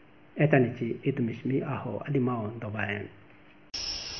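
An older man speaks calmly and close up into a microphone.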